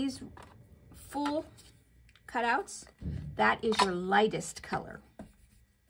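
An ink pad is set down on a table with a light tap.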